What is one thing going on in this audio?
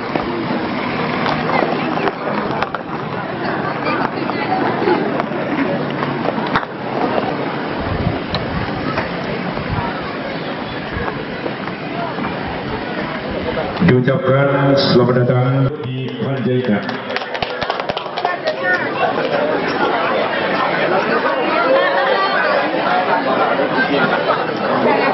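A crowd of people chatters all around, outdoors.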